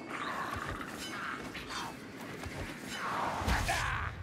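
A heavy hammer thuds into a creature.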